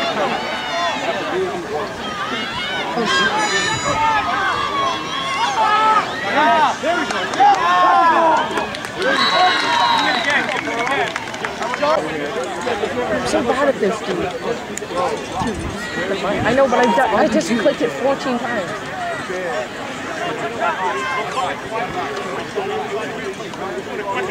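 A crowd of spectators chatters and cheers loudly outdoors.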